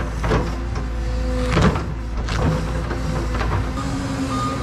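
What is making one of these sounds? Roots and dirt crack and thud as an excavator bucket tears them loose.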